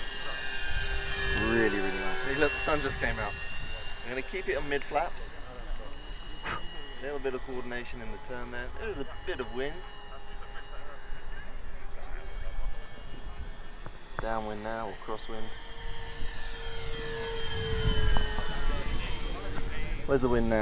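A model plane's engines drone overhead, rising and falling in pitch as it passes.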